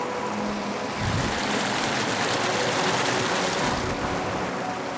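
Hands splash in rushing water.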